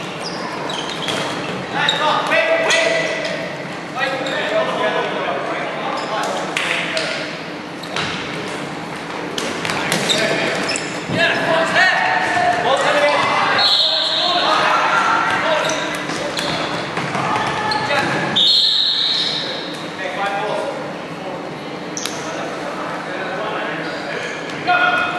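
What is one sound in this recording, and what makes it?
Young men shout and call out to one another across a large echoing hall.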